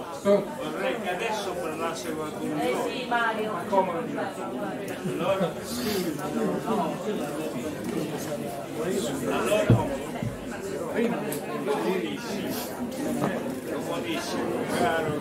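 An elderly man speaks into a microphone with animation.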